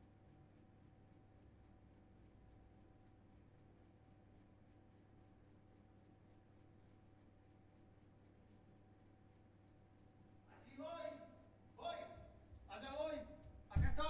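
A small fridge hums steadily nearby.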